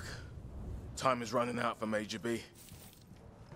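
A young man talks briefly into a close microphone.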